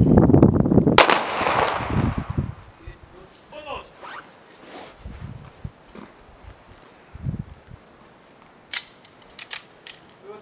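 A 9mm pistol fires sharp shots outdoors, echoing off stone walls.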